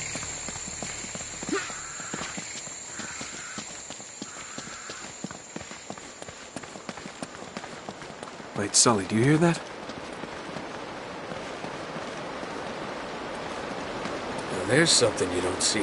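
Footsteps crunch on dirt and stone.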